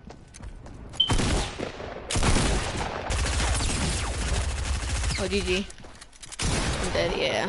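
Rapid gunfire blasts loudly.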